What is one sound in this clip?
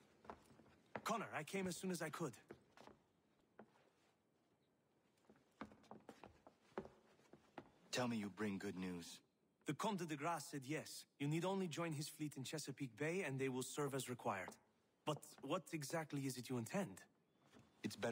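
A young man speaks calmly and firmly, close by.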